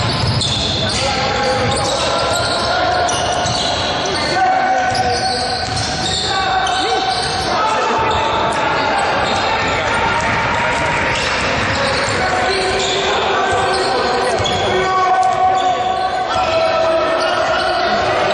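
Spectators murmur and call out in the background.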